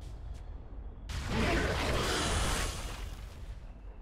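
A magical icy blast bursts with a loud rushing roar.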